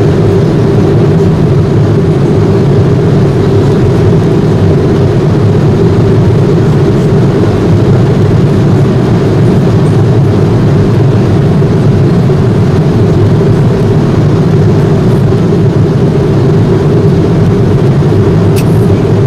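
A steady low roar of jet engines fills an airliner cabin in flight.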